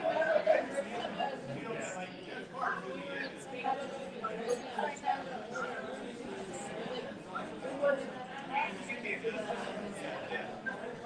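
Several people chat in the background.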